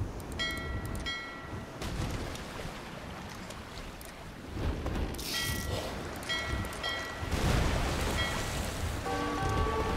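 Ship cannons boom and crash in a battle at sea.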